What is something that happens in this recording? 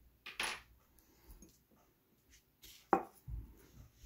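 A glass dish scrapes and clinks on a hard counter.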